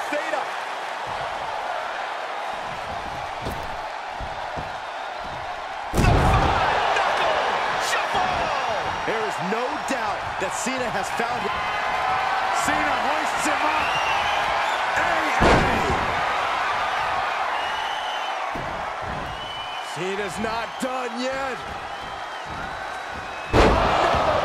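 A large crowd cheers and roars loudly throughout.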